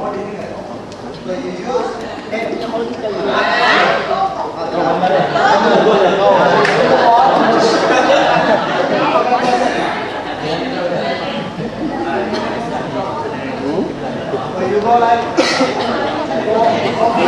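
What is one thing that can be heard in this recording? Many children chatter and call out in a large echoing hall.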